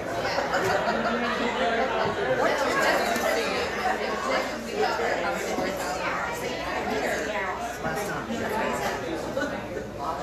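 An acoustic guitar is strummed loosely.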